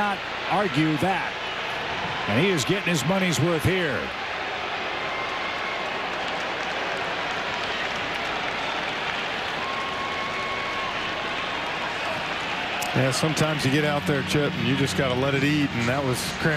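A large crowd murmurs steadily in a big open stadium.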